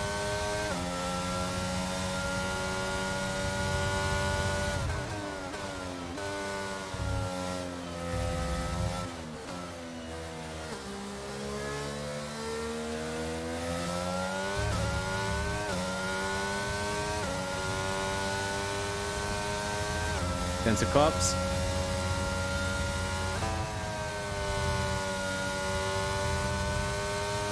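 A racing car engine screams at high revs, dropping in pitch under braking and rising again through the gears.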